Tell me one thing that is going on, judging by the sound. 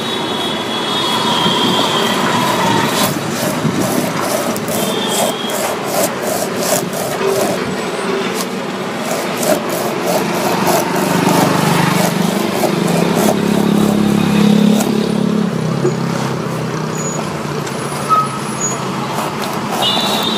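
A knife scrapes and shaves rubber in quick repeated strokes.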